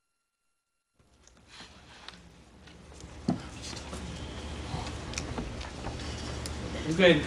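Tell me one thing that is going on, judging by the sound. Several men and women murmur and talk quietly nearby.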